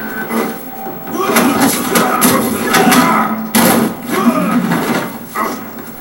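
Punches and kicks thud loudly from a fighting game on a television, heard through its speakers.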